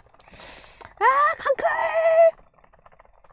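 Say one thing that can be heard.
A young boy exclaims loudly in a high voice.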